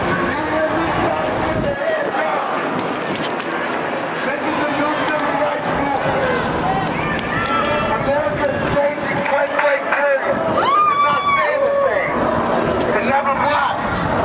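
Many voices shout and cheer in a crowd.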